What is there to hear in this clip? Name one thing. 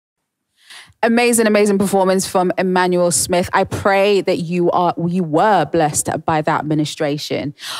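A young woman talks with animation into a microphone, heard close.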